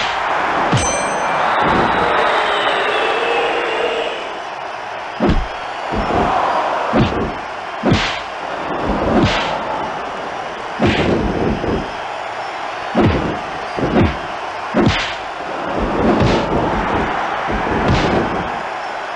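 Blows and body slams thud loudly again and again.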